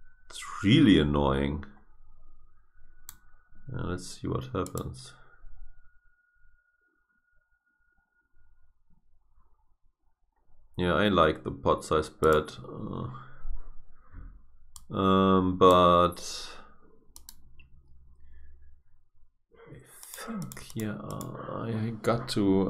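A man talks casually and close to a microphone, in bursts with pauses.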